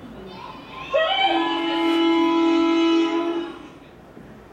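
A train horn blares loudly through a loudspeaker.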